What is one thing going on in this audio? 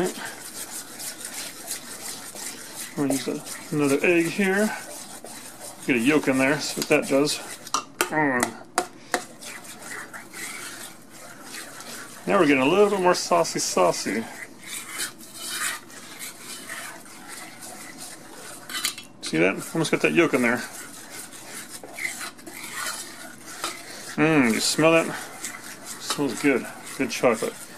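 A hand squishes and squelches through a thick wet paste in a metal pot.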